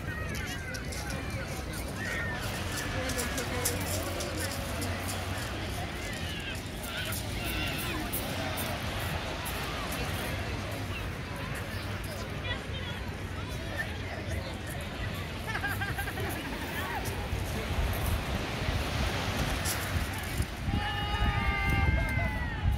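A crowd of beachgoers chatters and calls out in the distance.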